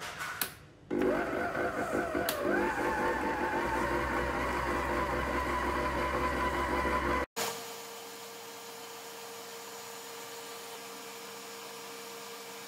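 An electric mixer whirs steadily as it beats a batter.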